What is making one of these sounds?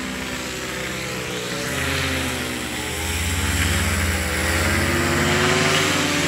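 A paramotor engine buzzes overhead, growing louder as it passes close.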